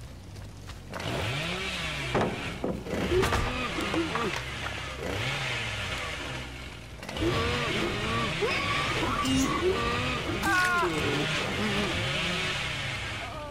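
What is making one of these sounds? A chainsaw revs loudly, its engine rising and falling in pitch.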